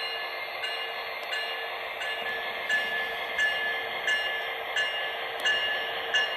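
A model locomotive hums steadily as it rolls slowly forward.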